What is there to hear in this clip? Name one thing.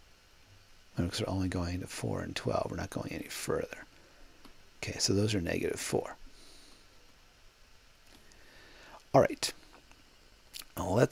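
A young man explains calmly, close to a microphone.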